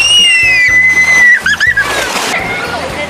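A young girl screams with delight as she slides down into water.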